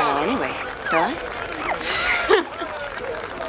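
A woman exclaims with animation close by.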